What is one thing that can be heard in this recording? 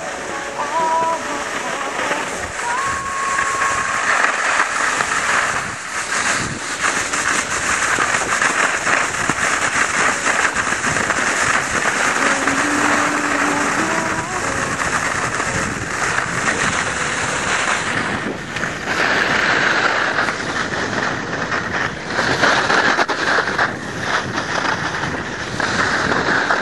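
A snowboard scrapes and hisses steadily over snow.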